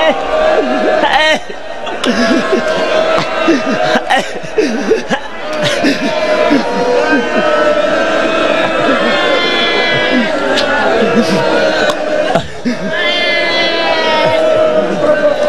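A crowd of men chants loudly together, close by.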